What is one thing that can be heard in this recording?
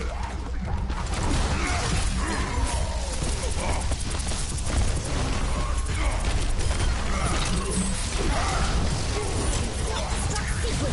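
Rapid gunfire and blasts crackle in a fast, chaotic fight.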